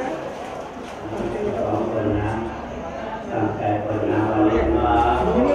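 A group of elderly men chant together in low voices through microphones.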